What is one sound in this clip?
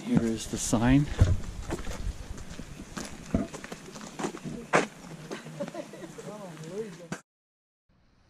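Footsteps scuff on a paved path.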